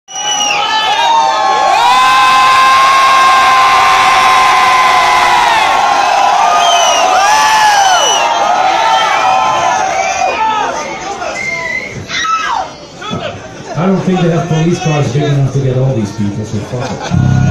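Electric guitars play loudly through amplifiers, with wailing bending notes.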